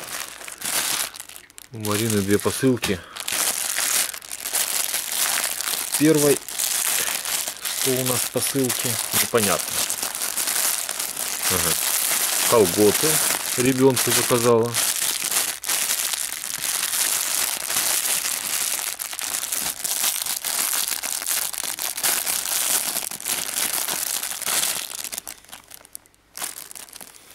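Plastic wrapping crinkles and rustles as hands tear open a parcel.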